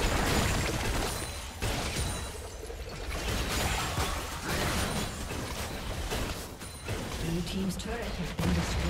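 Game sound effects of spells and blows burst and clash in a hectic battle.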